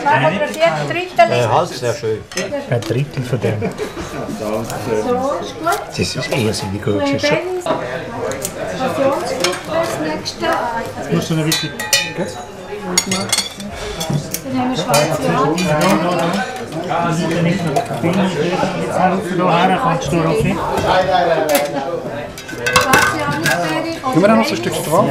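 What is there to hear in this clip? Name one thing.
Cutlery and serving tools clink against plates and dishes.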